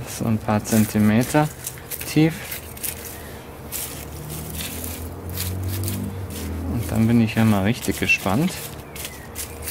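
A fork scrapes and rustles through dry bark mulch.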